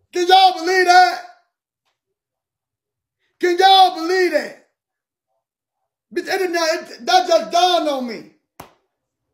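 A man talks with animation, close to a phone microphone, in short bursts with pauses.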